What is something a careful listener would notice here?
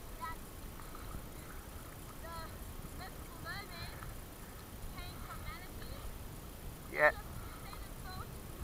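Water laps gently close by.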